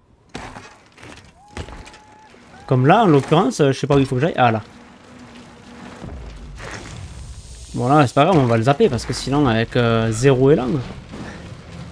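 Bicycle tyres roll and crunch over dirt and rock.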